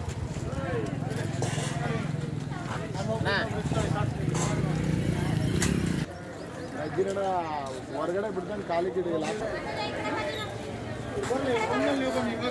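A crowd of men and women chatter and call out nearby outdoors.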